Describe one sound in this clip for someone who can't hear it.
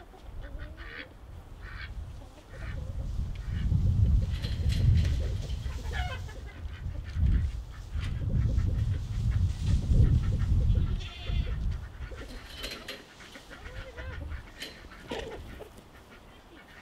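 Wind blows in gusts across the microphone outdoors.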